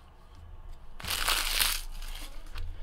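Cards shuffle and slide against each other.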